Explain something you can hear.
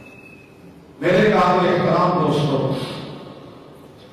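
An elderly man preaches loudly into a microphone, his voice echoing in a hall.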